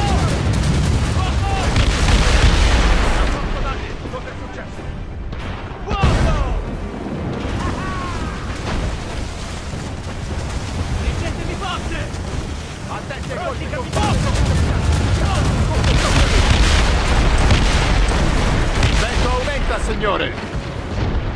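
Cannons boom in heavy volleys.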